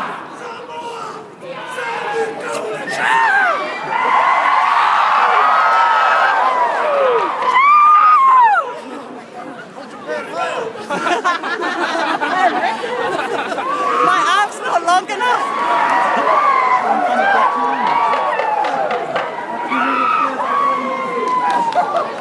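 A crowd cheers and shouts with excitement.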